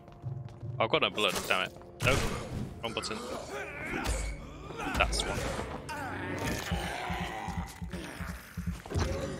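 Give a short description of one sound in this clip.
Blows and gunshots thud and crack in a fight.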